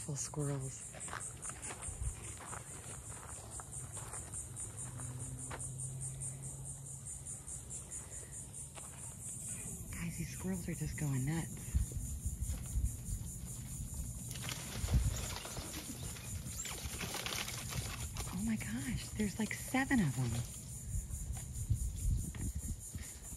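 Wind gusts outdoors and rustles the leaves of nearby bushes and trees.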